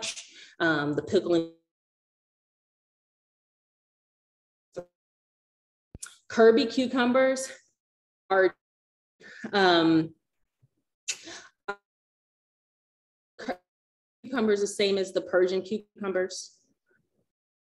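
A young woman talks with animation, close to the microphone, with long pauses.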